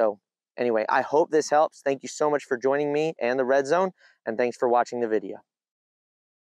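A man talks calmly and clearly into a close microphone.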